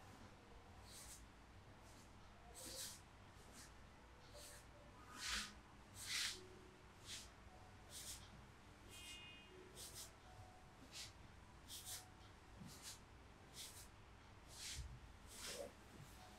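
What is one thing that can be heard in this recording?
Hands rub and pat rhythmically on a person's back and clothing.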